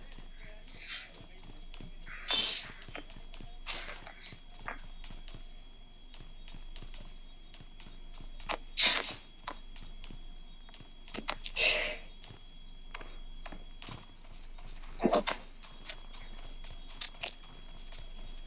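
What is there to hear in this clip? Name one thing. Footsteps tap on a hard floor and then crunch on snow.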